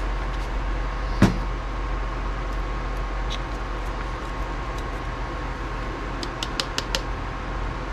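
A small plastic container taps and clicks on a table.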